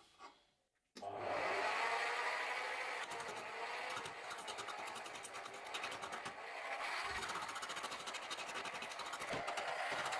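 A chisel scrapes and cuts into spinning wood.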